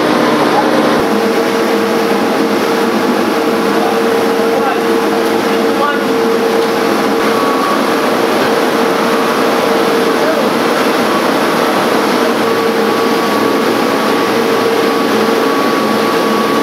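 A machine engine runs with a steady loud drone.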